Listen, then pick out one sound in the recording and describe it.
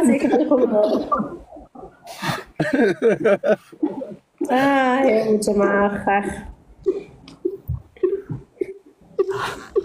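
A young woman talks over an online call.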